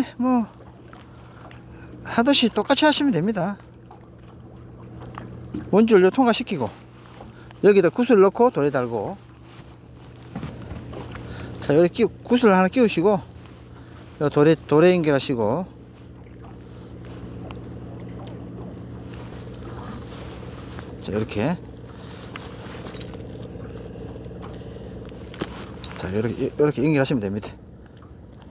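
A middle-aged man talks calmly and close by, in short bursts with pauses.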